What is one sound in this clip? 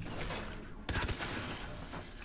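A gun fires with a sharp electric crackle.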